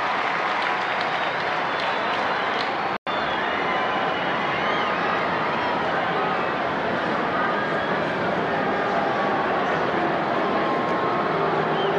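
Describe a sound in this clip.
Spectators whistle shrilly.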